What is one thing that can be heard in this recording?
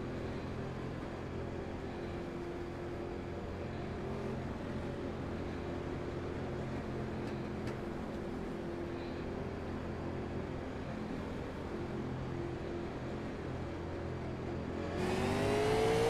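A race car engine rumbles steadily at low speed.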